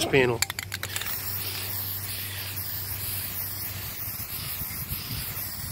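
An aerosol can sprays with a steady hiss.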